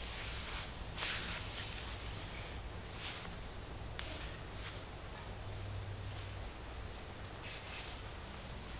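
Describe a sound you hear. Hands rub and brush softly against cloth.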